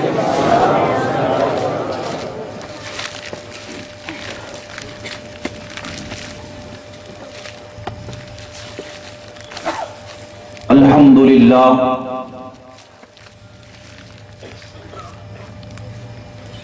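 A man speaks and chants loudly through a microphone, echoing through loudspeakers.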